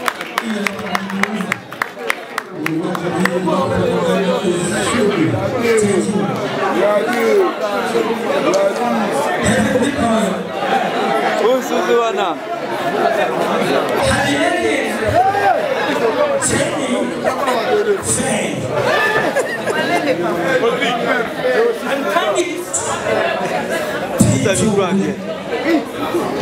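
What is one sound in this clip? A young man speaks with animation into a microphone over loudspeakers in an echoing hall.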